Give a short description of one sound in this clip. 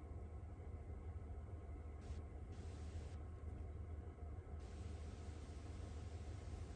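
Fine bubbles fizz softly in a liquid.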